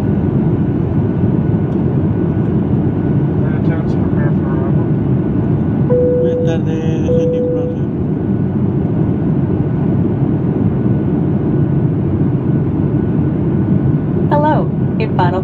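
Jet engines roar steadily inside an airplane cabin in flight.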